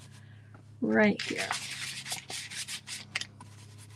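A brush dabs into wet paint on a plastic plate.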